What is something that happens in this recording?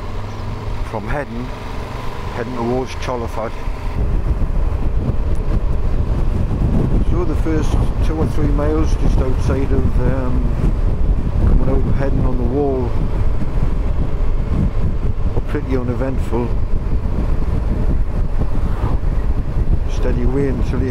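A man talks calmly through a helmet microphone.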